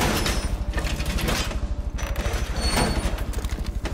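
A wooden barricade is hammered into place with quick knocks.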